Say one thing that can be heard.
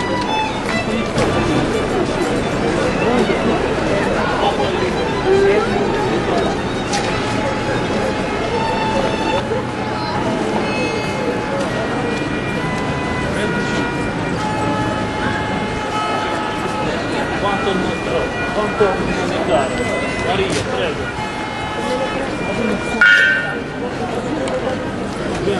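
A crowd of people murmurs and walks along a busy street outdoors.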